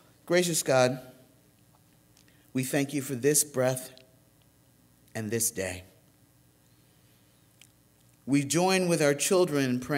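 An elderly man speaks calmly into a microphone, in bursts with pauses.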